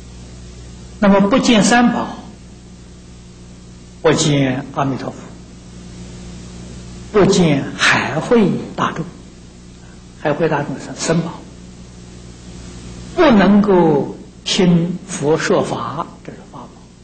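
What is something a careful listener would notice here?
An elderly man speaks slowly and deliberately through a microphone, in bursts with pauses between.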